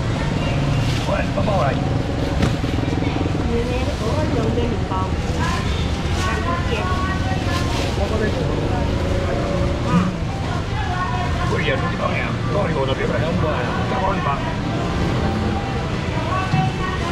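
A crowd of men and women talk over each other close by.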